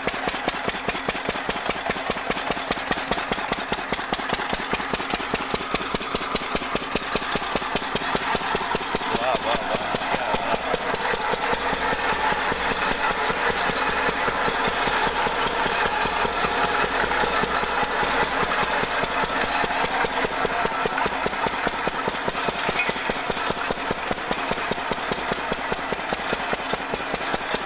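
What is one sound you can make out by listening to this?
A diesel engine chugs loudly and rapidly close by.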